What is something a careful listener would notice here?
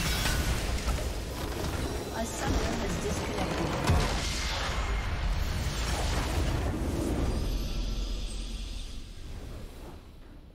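Magic blasts and explosions crash loudly.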